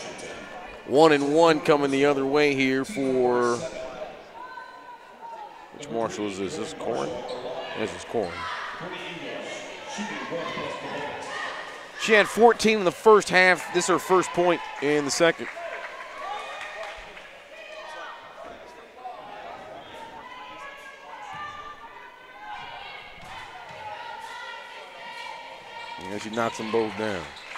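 Young spectators chant and cheer loudly in an echoing gym.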